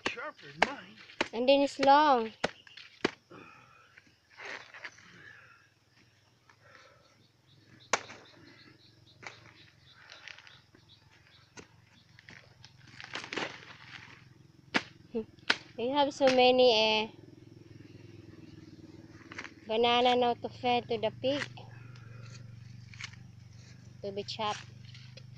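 A machete chops into a plant stalk with dull knocks.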